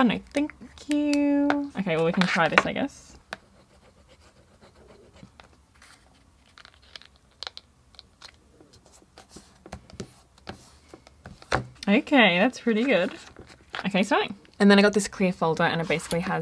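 Paper rustles and crinkles softly under fingers.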